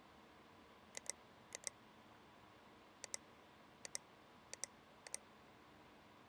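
Short computer interface clicks sound in quick pairs.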